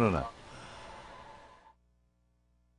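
An elderly man laughs heartily close by.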